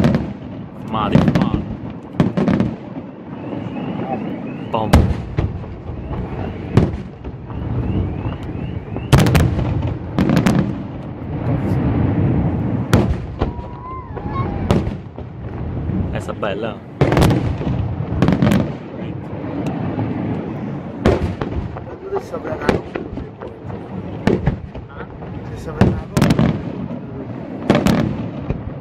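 Fireworks burst with loud booming bangs, echoing across the open air.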